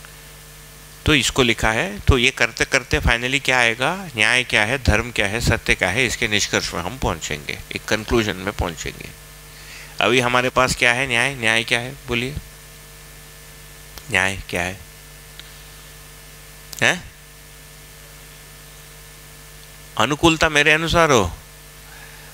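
A man speaks calmly into a close headset microphone, in bursts with pauses.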